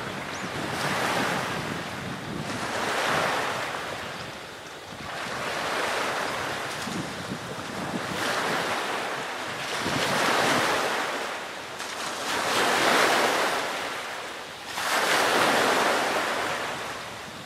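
Waves wash in rhythmic surges on a shore, outdoors.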